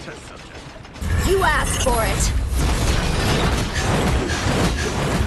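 Flames roar and burst with heavy booming blasts.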